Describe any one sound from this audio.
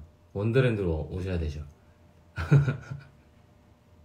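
A young man speaks softly and close up.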